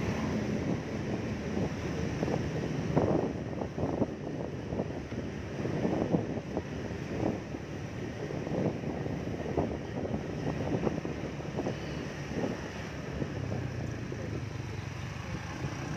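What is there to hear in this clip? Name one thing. A motorbike engine hums steadily up close as it rides along.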